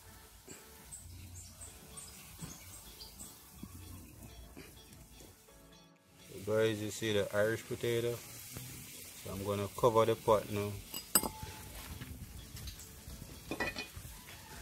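Water bubbles in a pot.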